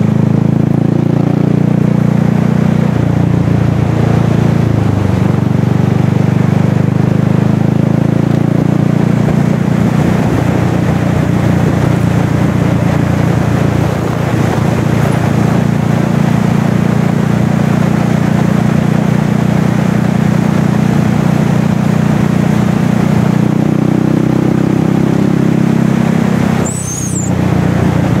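A vehicle engine hums steadily, with its pitch shifting now and then.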